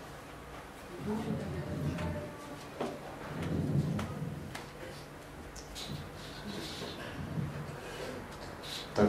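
A man speaks calmly at a distance in a slightly echoing room.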